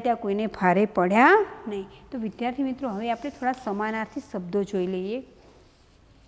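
A middle-aged woman speaks calmly and clearly into a microphone.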